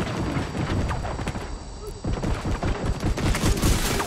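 An explosion booms and flames roar.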